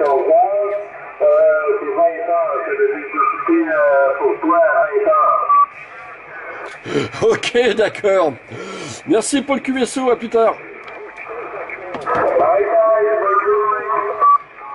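A man's voice talks over a radio loudspeaker, thin and crackly.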